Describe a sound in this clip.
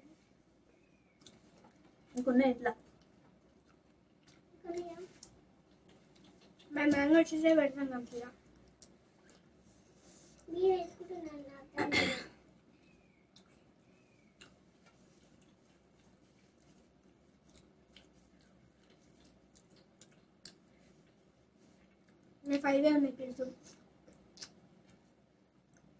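A boy and a young woman bite and chew juicy fruit.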